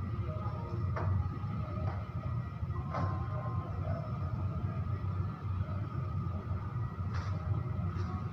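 Light knocks and clicks sound as a man works with his hands.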